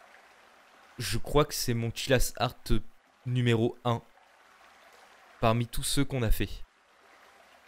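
A young man speaks casually and close to a microphone, in short bursts.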